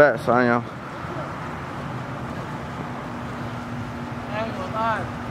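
Water laps gently in a pool.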